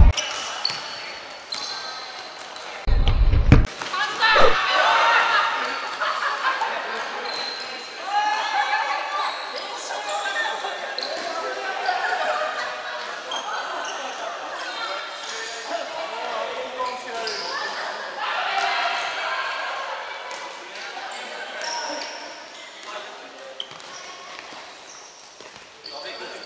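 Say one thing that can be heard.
Players shout and call out to each other across a large echoing hall.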